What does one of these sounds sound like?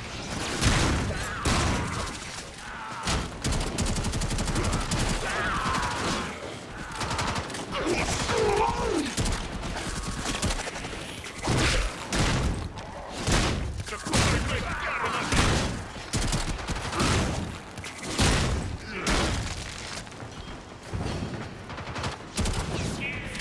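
Guns fire in rapid bursts with loud blasts and impacts.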